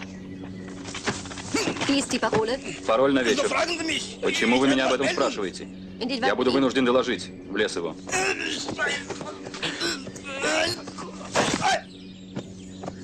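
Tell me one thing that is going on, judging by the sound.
Men shout and grunt loudly close by.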